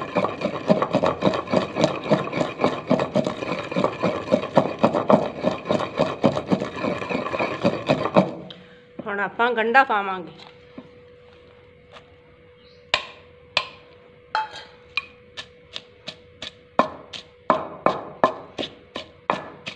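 A wooden pestle pounds rhythmically in a clay mortar.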